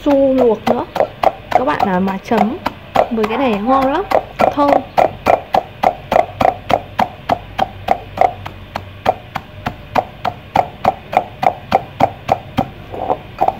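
A pestle pounds rhythmically in a metal mortar, crushing nuts.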